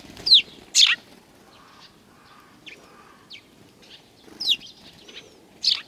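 A small bird's wings flutter briefly.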